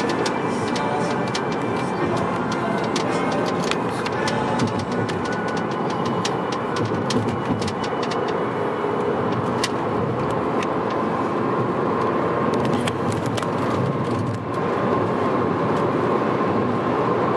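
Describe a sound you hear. Tyres roll on the road with a steady rumble.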